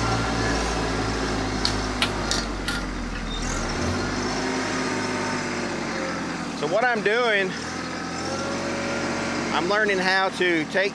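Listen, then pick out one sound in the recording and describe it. A tractor engine runs steadily nearby.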